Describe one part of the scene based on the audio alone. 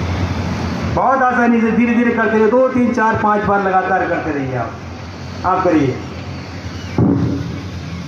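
A man's voice calls out over a loudspeaker outdoors.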